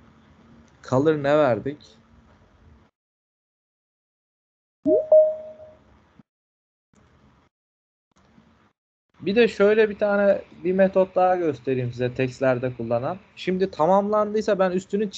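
A man talks calmly through an online call, explaining with pauses.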